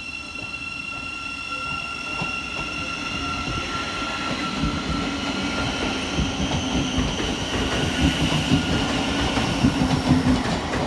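An electric train pulls into a station with a steady whine and rumble.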